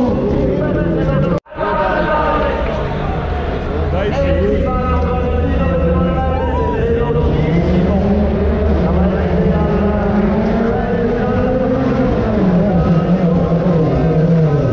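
A race car engine roars and revs loudly nearby.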